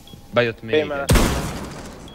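A gun fires in a short loud burst.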